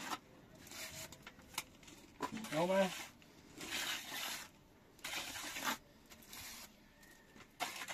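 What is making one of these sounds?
A trowel scrapes as it spreads mortar on a block wall.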